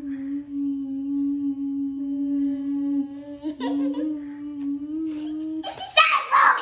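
Two young girls chant a long, steady hum together.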